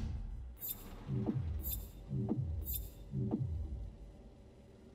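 Game menu rewards land one after another with whooshing, booming swooshes.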